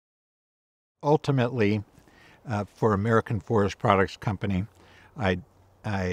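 An older man speaks calmly and closely into a microphone.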